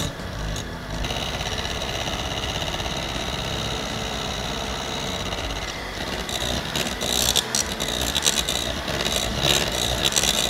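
An electric hand mixer whirs steadily, beating liquid in a bowl.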